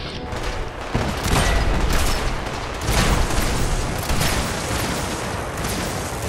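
An electric weapon crackles and zaps in loud bursts.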